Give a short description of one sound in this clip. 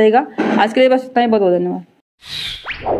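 A young woman speaks clearly into a microphone, close by.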